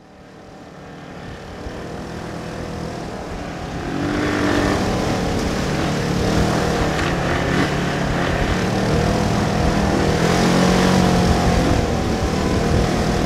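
Tyres crunch and skid on a dirt track.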